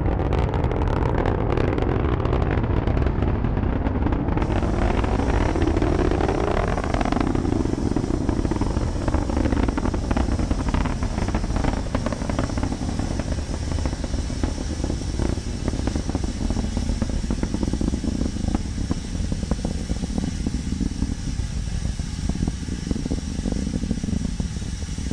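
A rocket engine roars and crackles steadily in the distance.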